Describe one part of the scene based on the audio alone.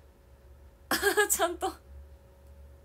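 A young woman laughs briefly, close by.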